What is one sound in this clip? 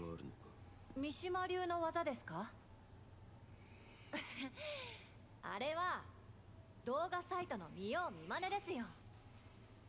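A young woman answers in a light, playful voice.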